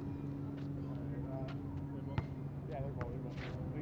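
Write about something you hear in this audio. A basketball bounces on pavement outdoors.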